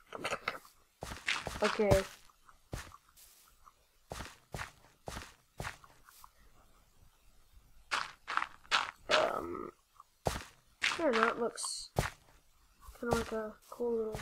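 Dirt crunches as a shovel digs into it.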